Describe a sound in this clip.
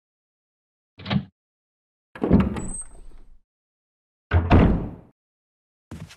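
A wooden door creaks open and thuds shut.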